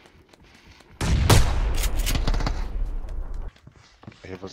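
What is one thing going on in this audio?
Gunshots blast loudly and close by, one after another.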